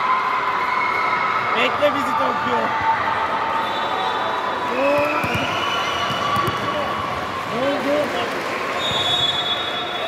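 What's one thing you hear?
A volleyball bounces on a hard floor.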